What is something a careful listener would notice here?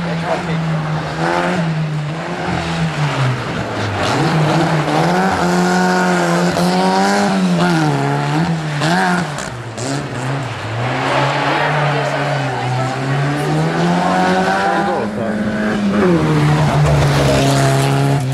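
Tyres slide and crunch on loose gravel.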